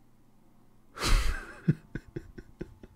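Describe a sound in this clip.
A young man laughs briefly.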